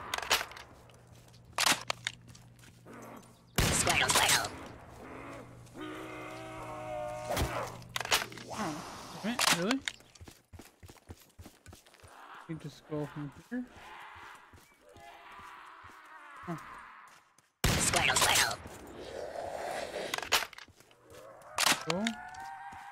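A rifle fires loudly several times.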